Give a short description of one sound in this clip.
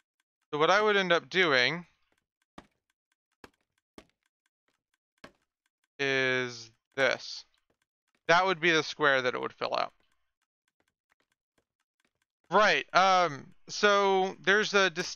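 A man talks with animation close to a microphone, in short bursts with pauses.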